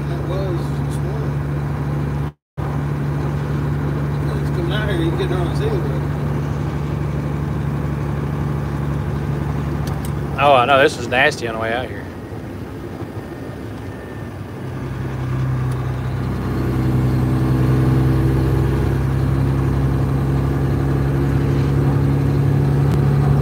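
A vehicle's engine hums steadily while driving.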